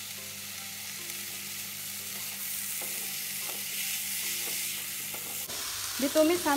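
A spatula scrapes and stirs against a pan.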